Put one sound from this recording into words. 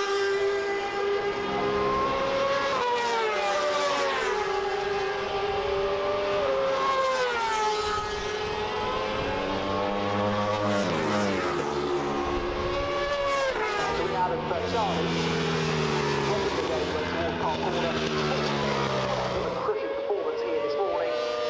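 Motorcycle engines scream at high revs, rising and falling in pitch as the bikes shift gears and pass by.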